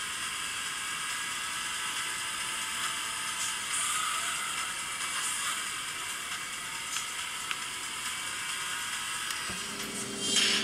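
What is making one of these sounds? A racing car's engine roars steadily from a small speaker.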